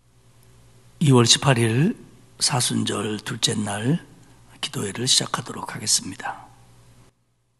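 A middle-aged man speaks calmly and solemnly into a microphone.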